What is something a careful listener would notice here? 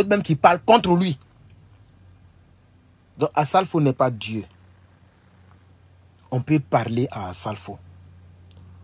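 A young man speaks with animation close to a microphone, in short bursts with pauses.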